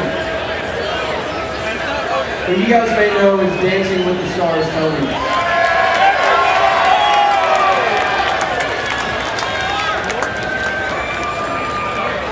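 A man sings loudly through a microphone over loudspeakers, outdoors.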